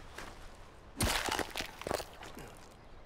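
A blade tears wetly into an animal carcass.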